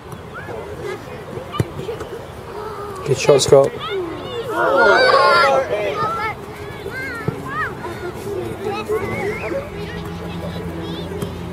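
Young children shout and cheer excitedly outdoors.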